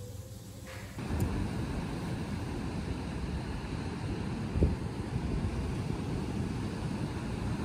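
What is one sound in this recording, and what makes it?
Waves crash and roll onto a beach in steady surf.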